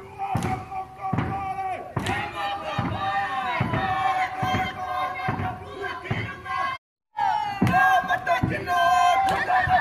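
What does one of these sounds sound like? Drums beat in a steady rhythm.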